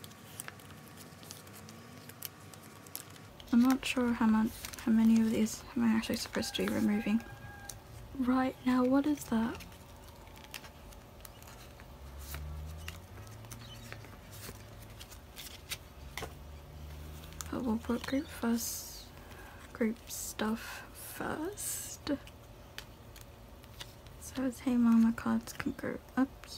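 Plastic sleeves crinkle and rustle as cards are slid in and out.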